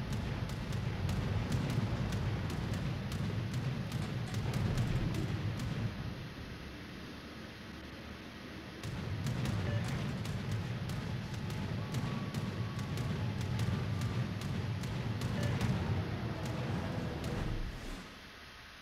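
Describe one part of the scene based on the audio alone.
A ship's engine rumbles low and steadily over rushing water.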